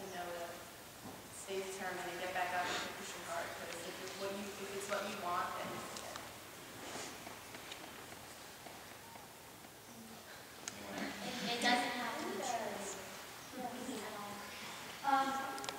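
A woman speaks to a crowd through a microphone.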